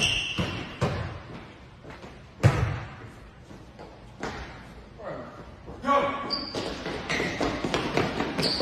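A basketball bounces on a hard floor in an echoing gym.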